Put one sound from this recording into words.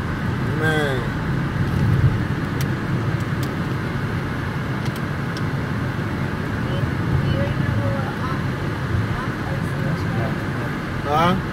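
A car engine hums steadily while driving along a road.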